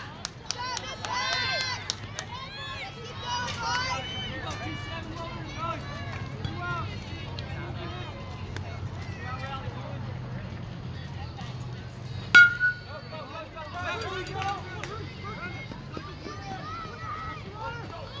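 Children and adults shout and cheer across an open field.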